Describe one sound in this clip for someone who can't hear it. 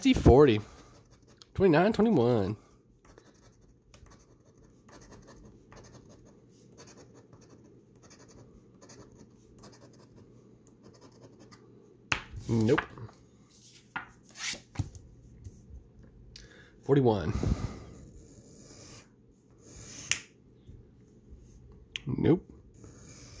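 A coin scratches rapidly at a paper card, with soft rasping strokes.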